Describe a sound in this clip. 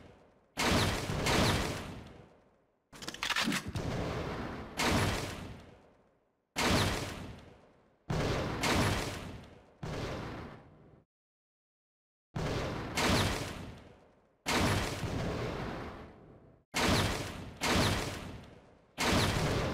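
Pistol shots ring out one after another, each echoing and fading.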